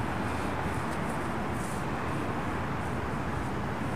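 A paintbrush brushes against a concrete kerb.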